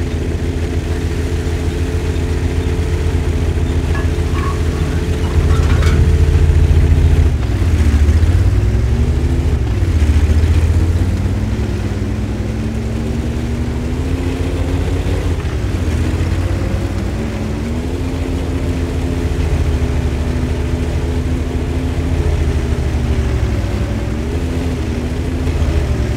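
A tank engine rumbles and whines steadily, its pitch rising and falling as it speeds up and slows.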